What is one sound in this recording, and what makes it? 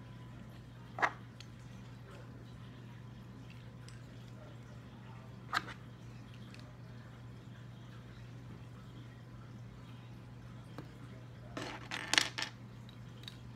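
Small plastic bricks click as they are snapped together by hand.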